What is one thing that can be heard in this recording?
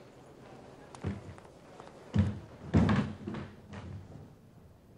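A plastic wheelie bin rattles as it is rolled over pavement.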